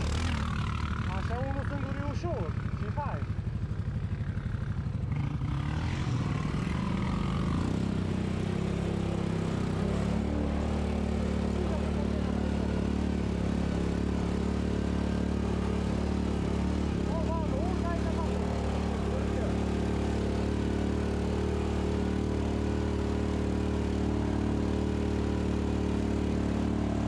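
An off-road vehicle's engine drones steadily up close.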